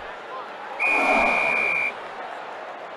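A whistle blows a long, shrill blast.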